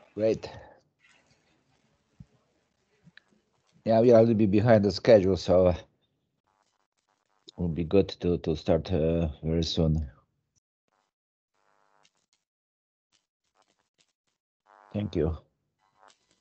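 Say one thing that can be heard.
A man speaks in short bursts through a microphone.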